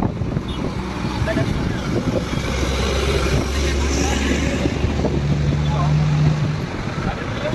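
Traffic rumbles steadily along a wet road outdoors.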